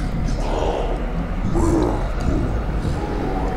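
Heavy stone doors grind slowly open.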